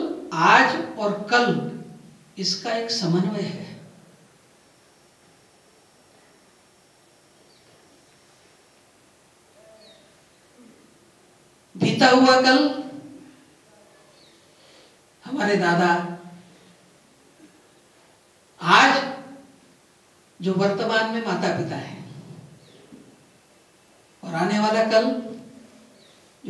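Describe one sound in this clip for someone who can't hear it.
A man speaks slowly over a microphone in short phrases with long pauses, echoing in a large hall.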